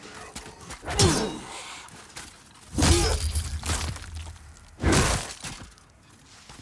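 Heavy blows and impacts thud during a fight.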